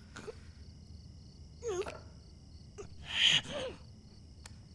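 An elderly man groans in pain.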